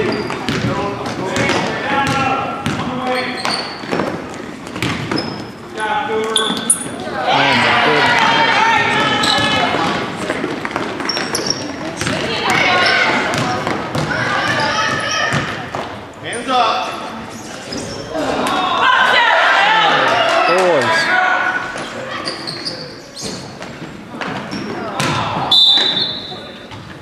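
Spectators shout and cheer from close by.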